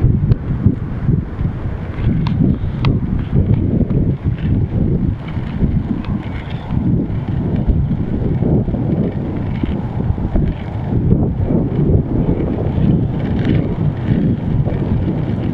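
Wind buffets loudly across a microphone outdoors.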